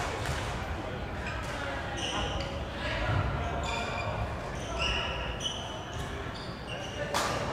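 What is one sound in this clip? Many voices chatter and call out, echoing in a large hall.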